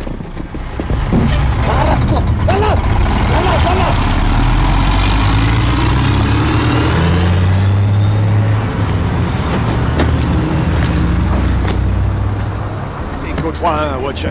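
A heavy truck engine rumbles deeply as the truck rolls by.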